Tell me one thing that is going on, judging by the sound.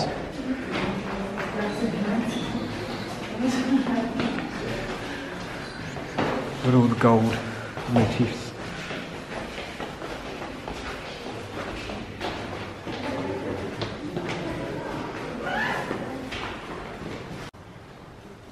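Adult men and women talk quietly in a large echoing hall.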